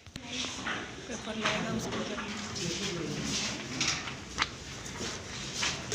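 Paper rustles.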